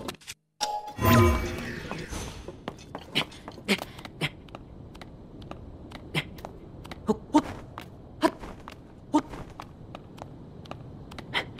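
Hands and feet tap and scrape on rock during a climb.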